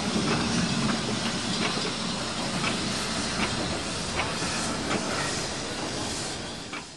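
Steel wheels click over rail joints.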